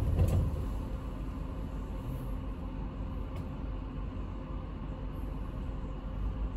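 A small truck drives past on the street with a low engine rumble.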